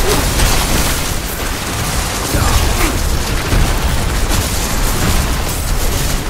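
Ice spells crackle and burst in quick succession.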